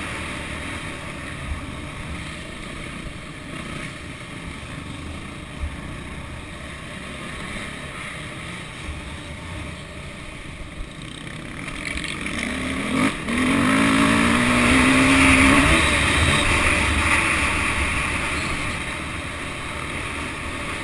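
A motorbike engine roars close by, revving up hard on the climbs.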